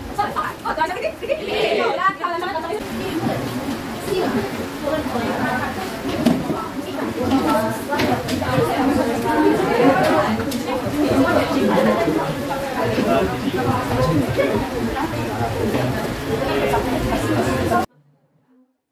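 Many students chatter at once in an echoing room.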